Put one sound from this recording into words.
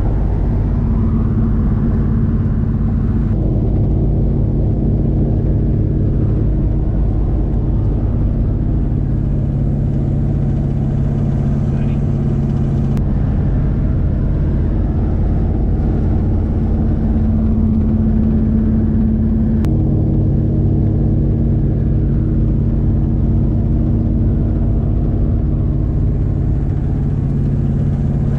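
Wind rushes loudly past an open window.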